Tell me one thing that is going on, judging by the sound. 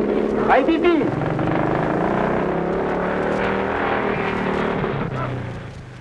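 A motorcycle engine runs steadily.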